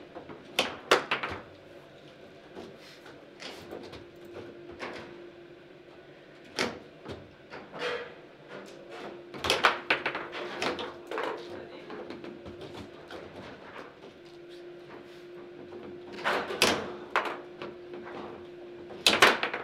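A foosball ball clacks sharply against rods and table walls.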